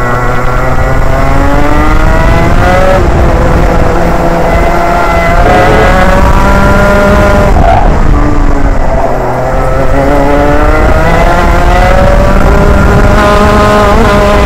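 A two-stroke racing kart engine screams close by, its pitch rising on the straights and dropping into the corners.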